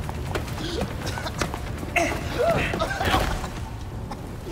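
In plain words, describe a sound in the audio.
A man coughs hard.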